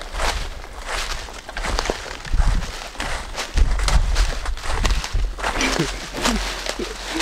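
Footsteps crunch through dry leaves on the ground.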